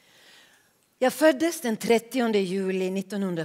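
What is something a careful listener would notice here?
A group of performers sings together on a stage.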